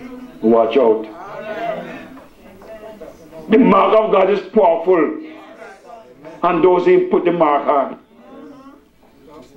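An elderly man preaches with animation through a microphone, in an echoing hall.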